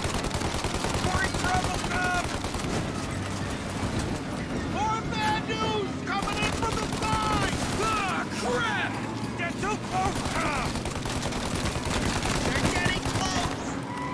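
A young man talks with animation, close into a microphone.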